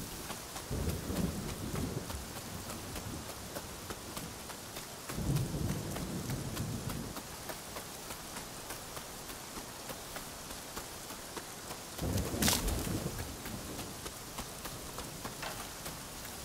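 Footsteps run quickly over a dirt path.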